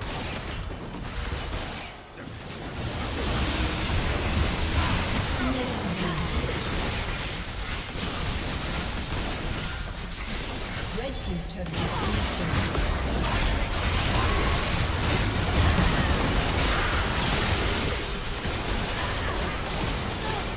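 Game spell effects crackle and clash during a fight.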